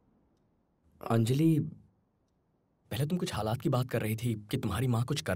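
A young man speaks calmly and earnestly, close by.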